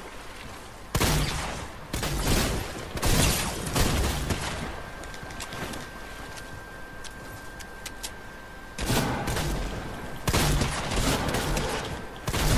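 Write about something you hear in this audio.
Gunshots from a video game fire in loud bursts.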